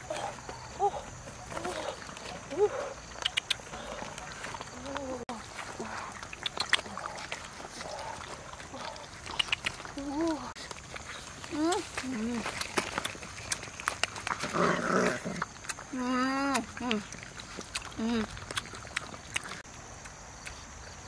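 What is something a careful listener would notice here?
Dogs chew and crunch on food.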